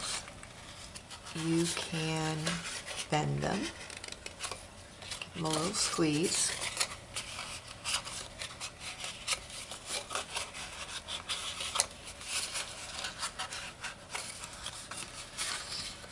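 Hands fold and crease stiff card stock, which rustles and crinkles.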